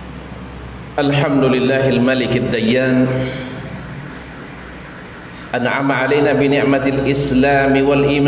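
A middle-aged man speaks with animation into a headset microphone.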